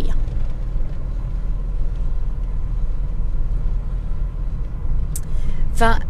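A car engine hums low and steady from inside the car as it drives.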